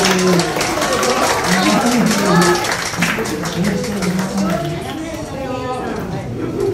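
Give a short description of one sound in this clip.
A group of older men and women sing together.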